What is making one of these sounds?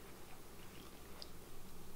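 A young woman chews food with soft smacking sounds.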